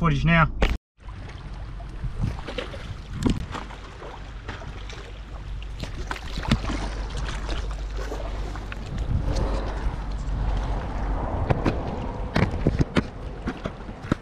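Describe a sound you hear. Water laps against rocks.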